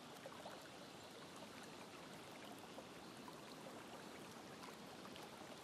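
A shallow stream trickles and babbles over stones.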